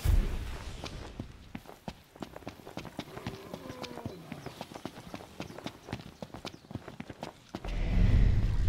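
Footsteps crunch quickly over dry ground.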